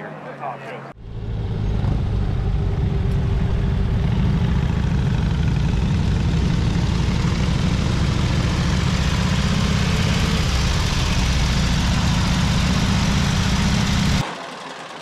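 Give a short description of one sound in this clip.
Motorcycle engines rumble steadily while riding.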